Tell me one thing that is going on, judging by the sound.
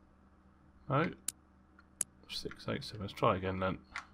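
A padlock's dial clicks.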